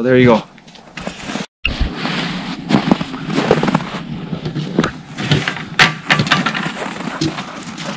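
Boots crunch through deep snow.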